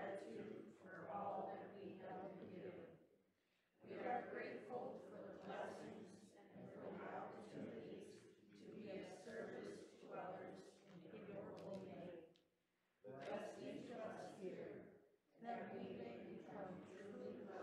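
An elderly man speaks calmly through a microphone in a large echoing room.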